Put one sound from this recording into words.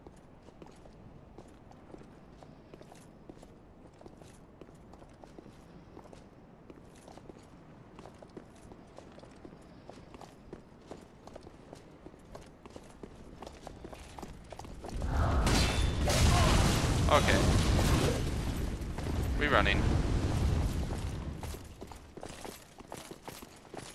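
Footsteps clatter on stone.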